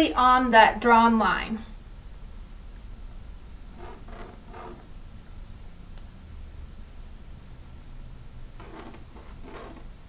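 A pencil scratches lightly on fabric.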